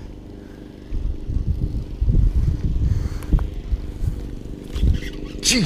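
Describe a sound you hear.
A fishing reel clicks and whirs as its line is wound in.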